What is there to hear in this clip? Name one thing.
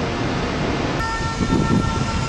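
An electric train idles with a steady whine.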